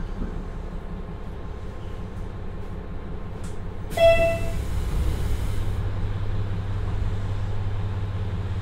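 A diesel engine idles with a low, steady rumble.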